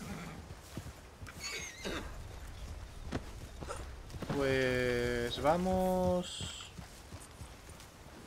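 Horse hooves clop on a dirt trail.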